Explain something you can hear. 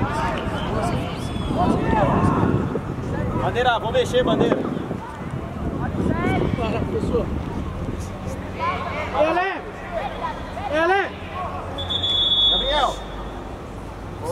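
Teenage boys shout to each other across an outdoor pitch.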